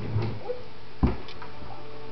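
A wooden drawer knocks and rattles.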